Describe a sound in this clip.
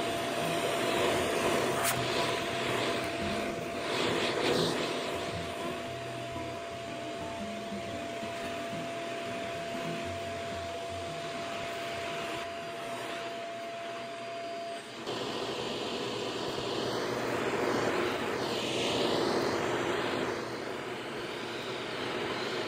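A vacuum nozzle scrapes and knocks against a table.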